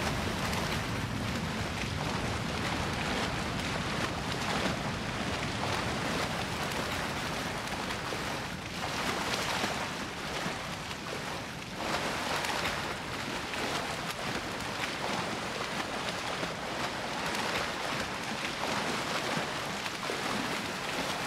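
Water splashes and laps steadily as a figure swims.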